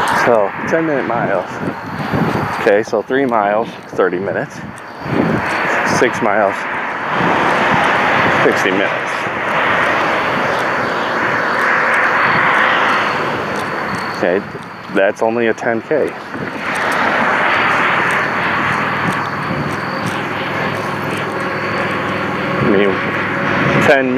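A young man talks close to the microphone while walking.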